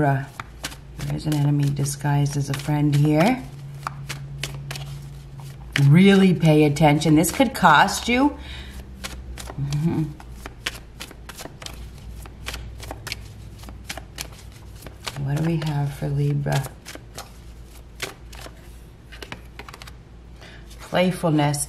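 A deck of cards is shuffled with quick, light flicks and clicks.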